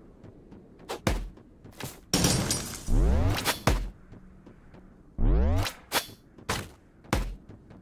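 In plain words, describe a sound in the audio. Arrows whoosh through the air.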